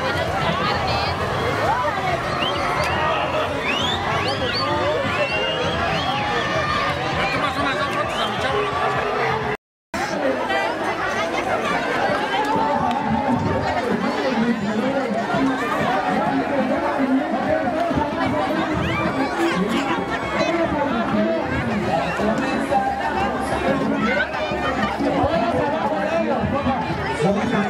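Children shriek and call out excitedly in the crowd.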